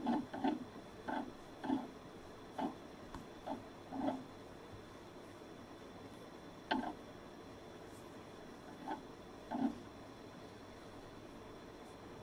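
A crochet hook softly scrapes and clicks through yarn.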